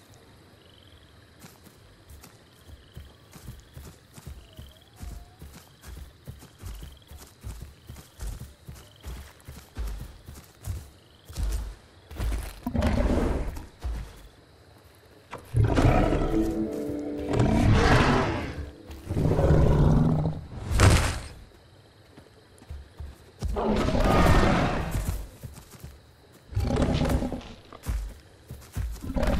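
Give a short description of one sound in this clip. Heavy footsteps thud quickly on the ground.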